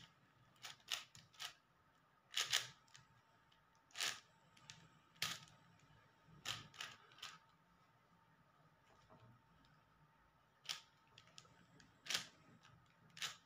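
Plastic cube pieces click and clack as a puzzle cube is twisted quickly, close by.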